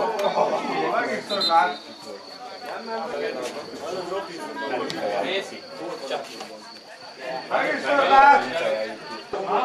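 Men shout across an open field.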